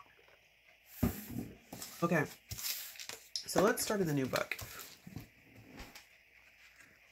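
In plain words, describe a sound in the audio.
A plastic sleeve crinkles and rustles as it is handled.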